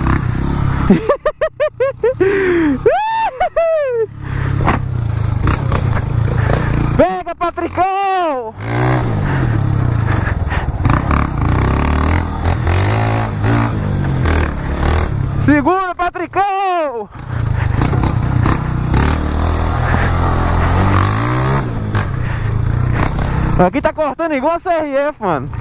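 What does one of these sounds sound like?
A motorcycle engine revs up sharply and drops back several times.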